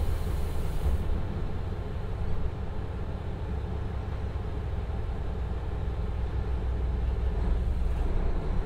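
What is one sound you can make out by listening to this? A diesel train engine revs up as the train begins to pull away.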